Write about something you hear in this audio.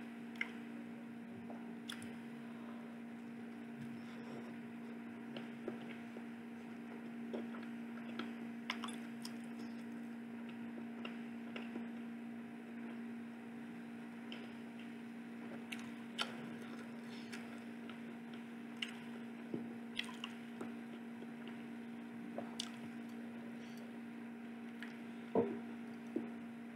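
A young man chews food with his mouth open, smacking and squelching close by.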